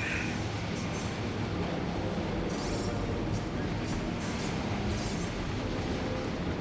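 A lift rumbles steadily as it moves through a shaft.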